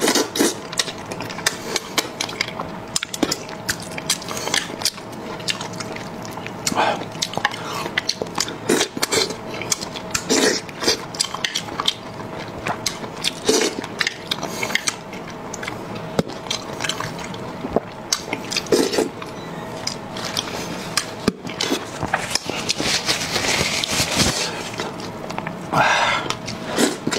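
A man slurps and chews food loudly, close to a microphone.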